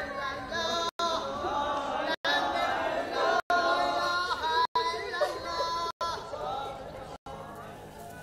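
A crowd of mourners wails and chants loudly outdoors.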